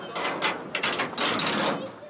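A padlock rattles against a metal door.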